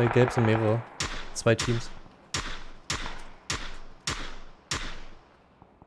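Rifle shots crack one after another at a steady pace.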